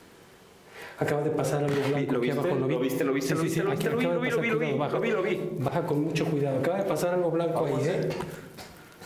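A man speaks in a low, hushed voice.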